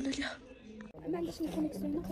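A young woman speaks softly close up.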